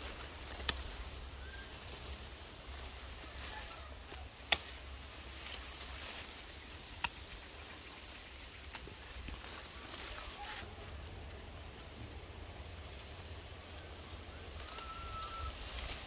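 Leaves rustle as branches are handled.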